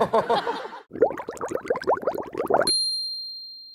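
A young man laughs heartily.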